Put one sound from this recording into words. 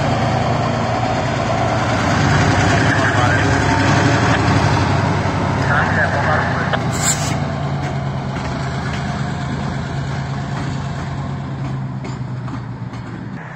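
A diesel locomotive engine rumbles close by and slowly fades as it moves away.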